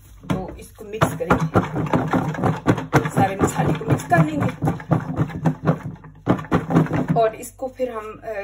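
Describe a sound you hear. Food rattles and thumps inside a shaken plastic container.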